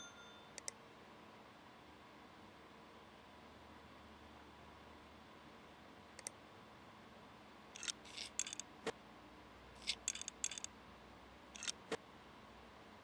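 Short game interface clicks and blips sound now and then.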